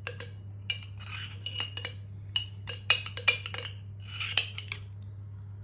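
Mayonnaise squirts and sputters from a plastic squeeze bottle.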